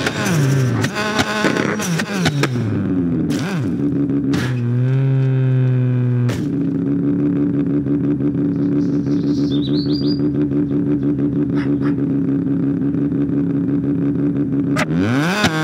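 A car engine revs up and down, roaring loudly.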